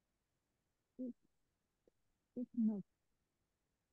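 A woman speaks briefly through an online call.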